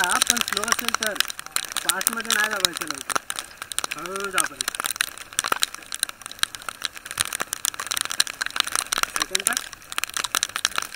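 Raindrops patter and tap sharply against a raincoat close by.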